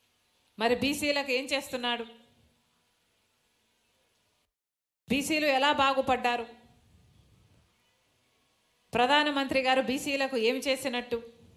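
A woman speaks into a microphone through a loudspeaker with animation, pausing between phrases.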